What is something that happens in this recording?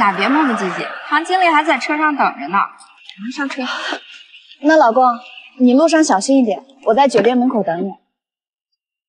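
A young woman speaks calmly and closely.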